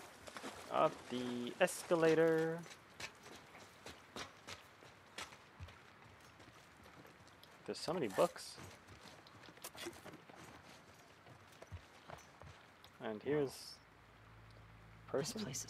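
Footsteps tread softly on hard ground.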